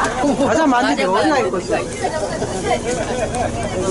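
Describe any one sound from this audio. An elderly woman talks and laughs close by.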